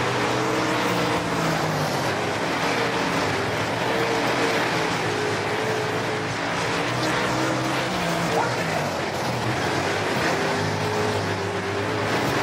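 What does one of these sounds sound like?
A race car engine roars loudly, its pitch rising and falling as it shifts gears.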